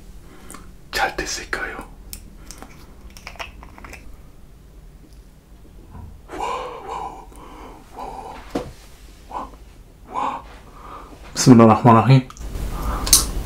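A plastic bottle crinkles and taps as it is handled.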